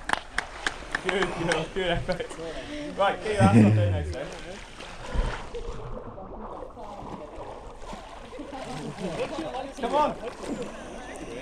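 A man in the water gasps and talks breathlessly close by.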